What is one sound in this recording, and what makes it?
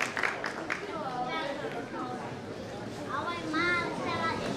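Children chatter on stage.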